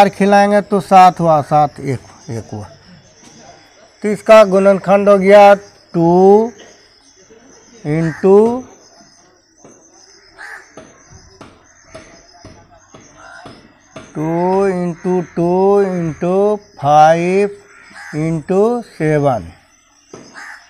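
A young man speaks steadily and clearly in a room with some echo.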